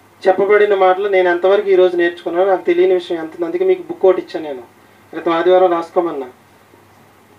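A man speaks with animation into a microphone through a loudspeaker.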